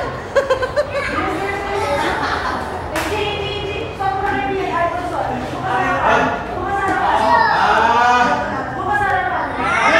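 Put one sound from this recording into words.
Young women shout and laugh excitedly.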